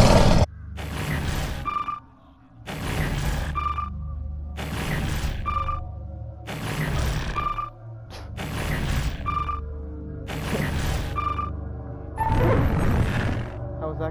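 A short chime sounds again and again at a steady pace.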